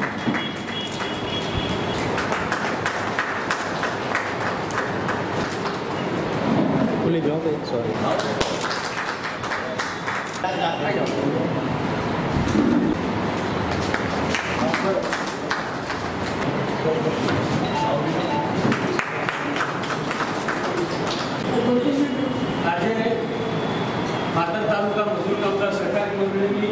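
Several men talk and murmur together in a room.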